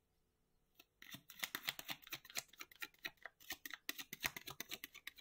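Playing cards riffle and flutter rapidly as they are shuffled.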